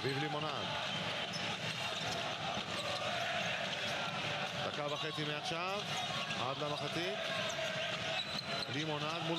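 A large crowd cheers and chants in an echoing arena.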